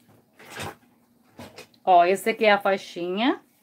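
Fabric rustles softly as hands smooth and fold it.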